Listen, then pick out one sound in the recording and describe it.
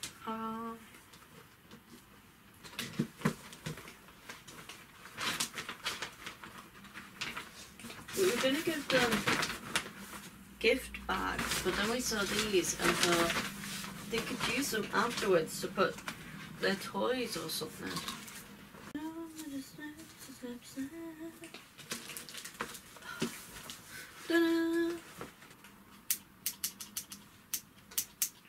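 Wrapping paper crinkles and tears.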